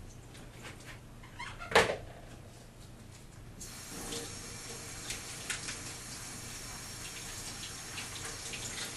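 Dishes clink as they are rinsed.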